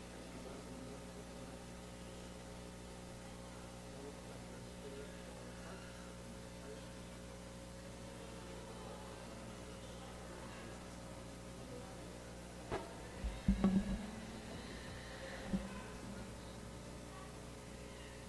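Adults talk quietly at a distance in a large echoing room.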